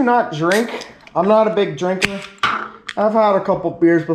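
An aluminium can clinks on a hard counter.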